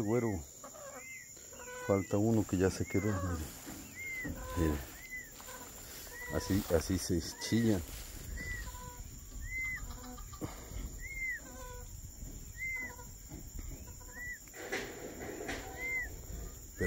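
A small bird peeps over and over at a steady pace.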